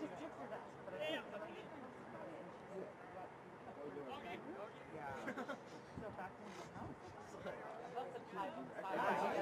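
Young players shout to each other across an open outdoor field.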